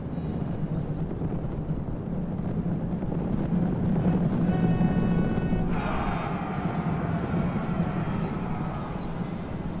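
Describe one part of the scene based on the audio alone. A large battle roars with a steady, rumbling din.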